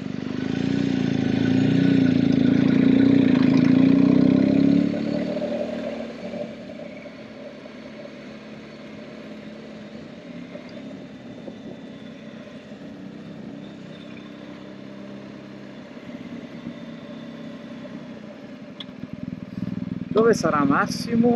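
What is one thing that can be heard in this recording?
A motorcycle engine hums loudly and then eases off as the bike coasts.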